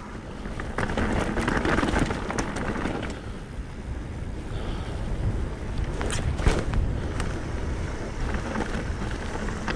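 Bicycle tyres rumble over rough, rocky ground.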